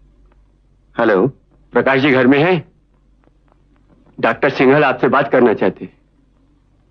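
A man speaks into a telephone.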